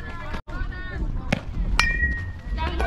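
A bat cracks sharply against a softball.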